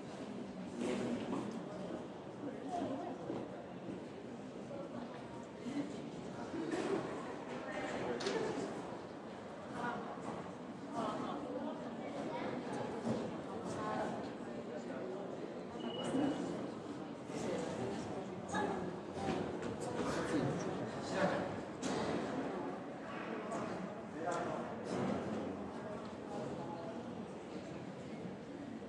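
Several men and women talk quietly nearby in an open, echoing space.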